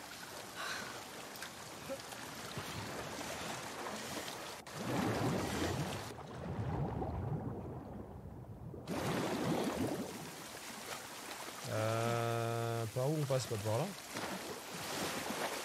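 Water splashes as someone swims.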